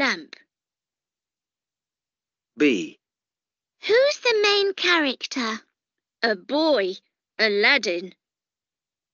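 A child speaks in short phrases through an online call.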